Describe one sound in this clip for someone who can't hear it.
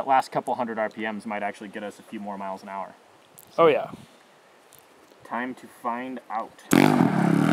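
A young man talks calmly up close.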